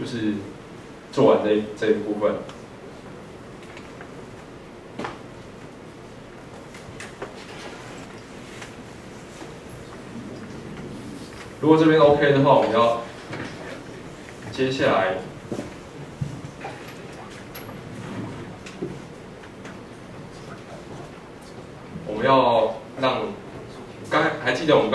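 A young man speaks calmly into a microphone over loudspeakers in an echoing hall, with long pauses.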